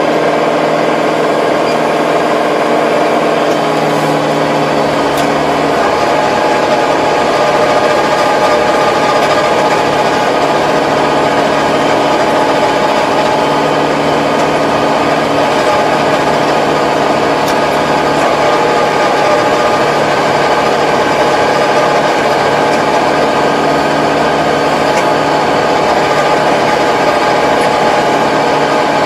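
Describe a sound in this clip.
A rotary tiller churns and rattles through soil.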